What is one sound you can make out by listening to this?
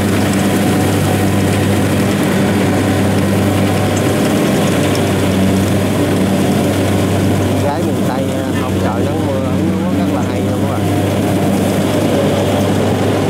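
A combine harvester's engine drones steadily close by.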